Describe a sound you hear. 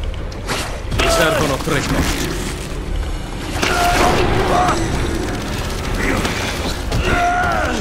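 A creature roars and shrieks loudly.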